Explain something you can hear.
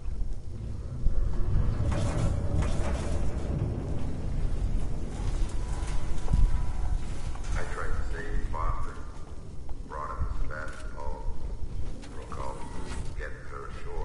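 A flamethrower roars in short bursts.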